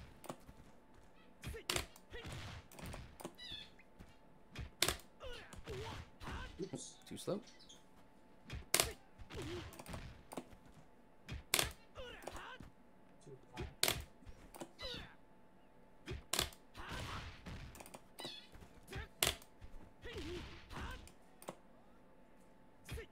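Punches and kicks land with sharp thuds in a fighting game.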